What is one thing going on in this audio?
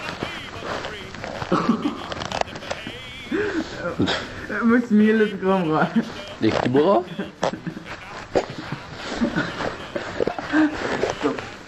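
A teenage boy talks nearby with animation.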